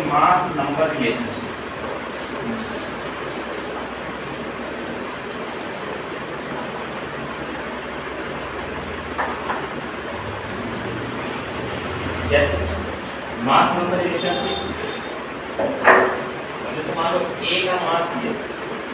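A man speaks calmly, explaining, close by in a slightly echoing room.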